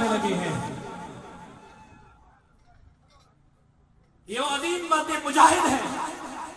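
A man speaks forcefully through a loudspeaker outdoors, his voice echoing.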